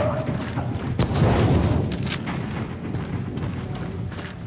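An explosion booms and fire roars.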